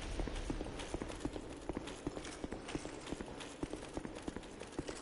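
Heavy armoured footsteps crunch quickly through snow.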